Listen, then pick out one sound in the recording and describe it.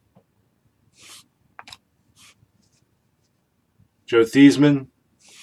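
Cards slide and rustle against each other in hands.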